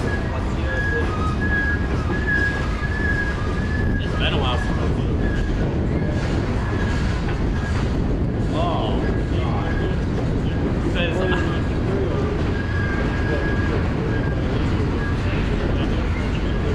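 A freight train rumbles slowly past nearby.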